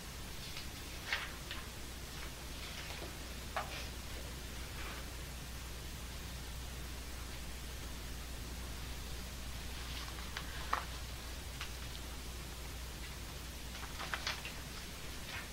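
Paper pages rustle and flip.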